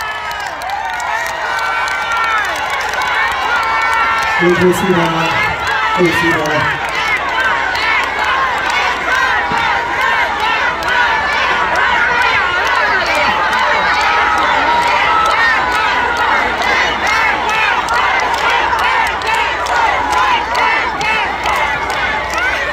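A crowd cheers and shouts noisily.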